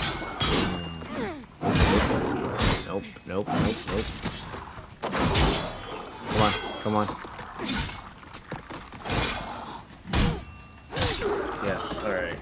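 Metal weapons swing and strike with sharp, heavy hits.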